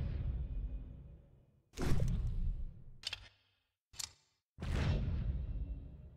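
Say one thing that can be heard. Menu selections click and chime.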